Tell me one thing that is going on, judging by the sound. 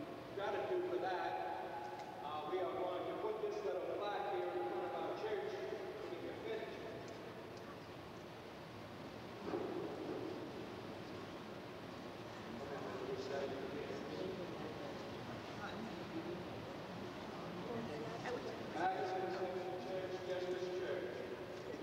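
An older man speaks calmly into a microphone in a room with a slight echo.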